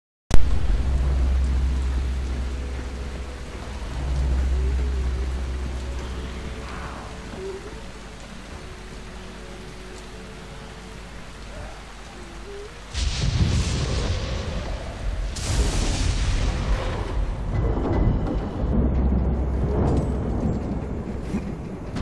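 A small flame hisses and crackles steadily.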